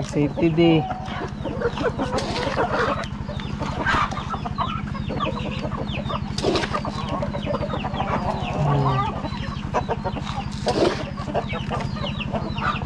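Chickens cluck and chirp nearby.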